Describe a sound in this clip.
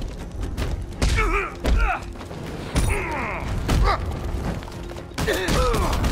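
Heavy punches land with hard thuds, one after another.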